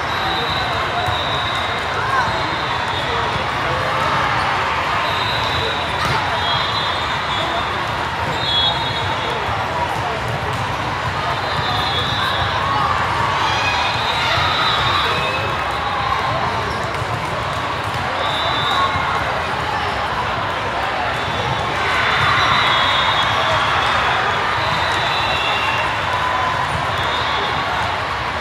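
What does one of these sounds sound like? A large crowd chatters throughout a big echoing hall.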